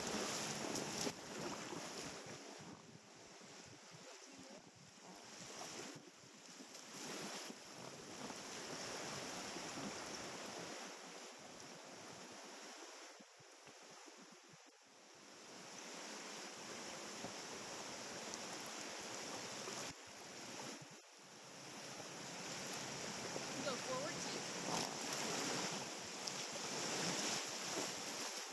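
Wind buffets close by, outdoors.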